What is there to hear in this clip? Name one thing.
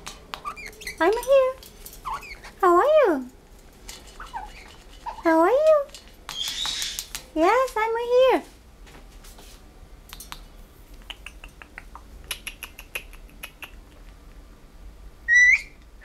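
A parrot whistles and squawks up close.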